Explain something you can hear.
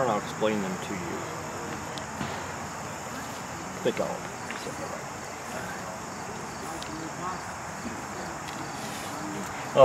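An elderly man speaks calmly nearby, outdoors.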